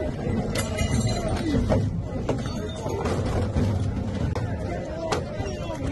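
Objects thud and clatter against riot shields.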